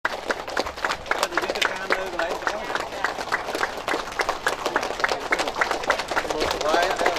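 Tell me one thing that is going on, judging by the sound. A crowd claps steadily close by.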